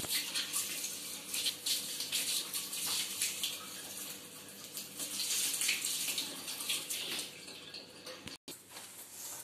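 Water from a hose splashes and hisses against a hard surface.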